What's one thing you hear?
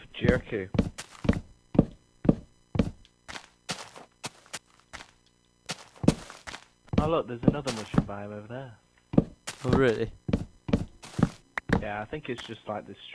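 Blocks crack and break under repeated chopping.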